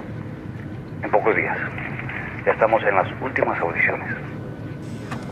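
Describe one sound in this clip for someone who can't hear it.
A man answers with animation, heard through a phone's speaker.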